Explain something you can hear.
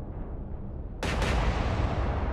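A large ship's gun fires with a loud blast.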